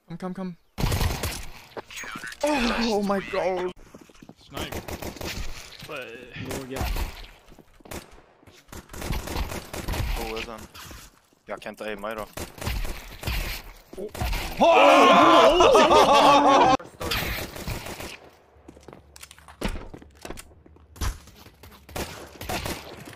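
A young man talks excitedly through a headset microphone.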